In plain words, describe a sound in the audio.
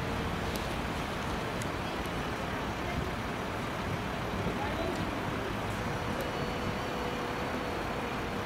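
A car drives slowly past.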